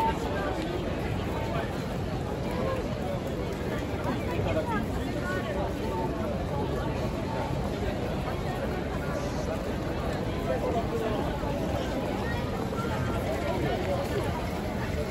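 A large crowd of people chatters nearby outdoors.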